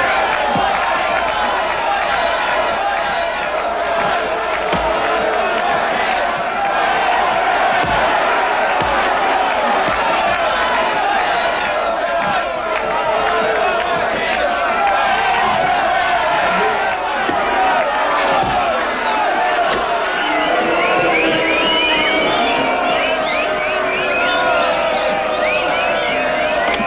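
A large crowd cheers and shouts loudly in an echoing hall.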